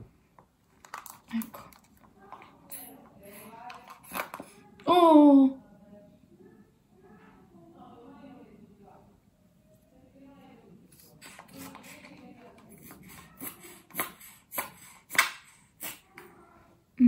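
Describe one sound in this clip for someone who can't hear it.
A small cosmetic container clicks and taps as it is handled.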